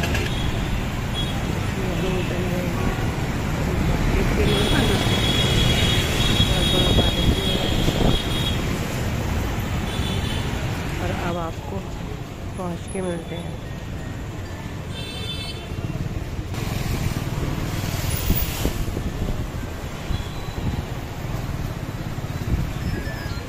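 Motorbike engines hum as they pass close by.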